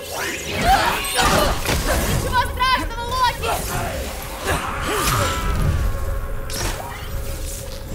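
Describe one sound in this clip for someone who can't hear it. Electric magic crackles and zaps.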